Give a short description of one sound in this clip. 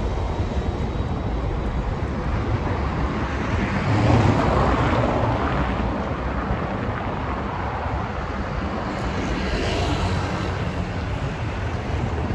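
Footsteps pass close by on stone pavement.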